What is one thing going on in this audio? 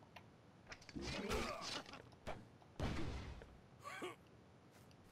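Blows land with heavy thuds and whooshes in a fight.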